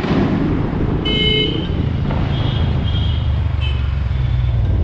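Car horns honk in traffic.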